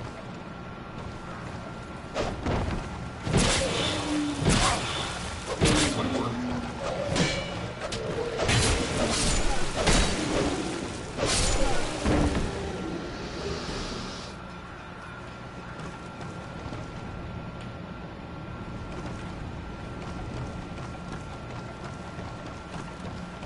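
Footsteps clomp on wooden planks.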